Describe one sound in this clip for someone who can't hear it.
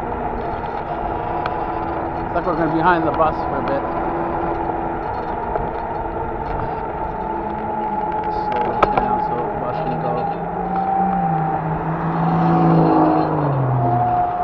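Tyres roll on an asphalt road.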